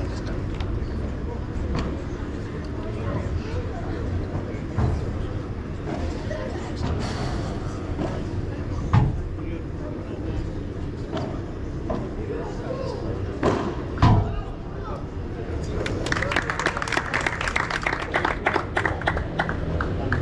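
Padel rackets strike a ball with sharp pops, back and forth.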